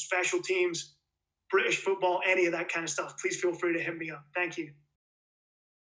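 A young man speaks calmly into a microphone over an online call.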